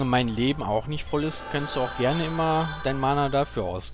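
A magic spell shimmers and chimes.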